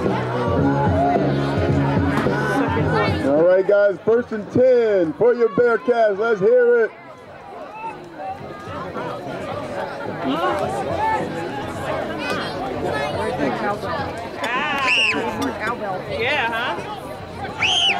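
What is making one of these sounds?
A crowd of people chatters and calls out at a distance.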